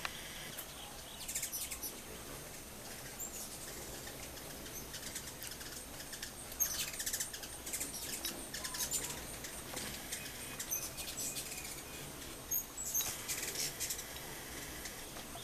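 Hummingbirds chirp in high, squeaky bursts.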